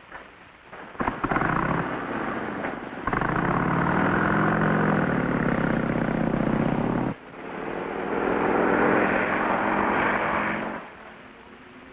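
A motorcycle engine runs as the motorcycle drives off.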